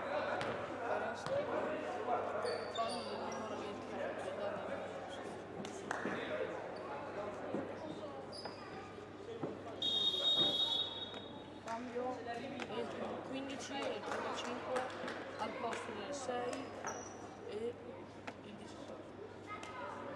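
Players call out to one another across the hall.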